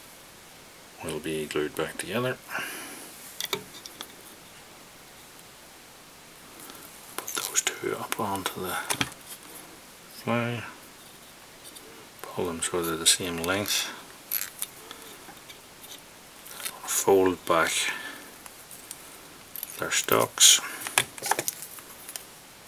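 A man talks calmly and closely into a microphone, in short bursts with pauses.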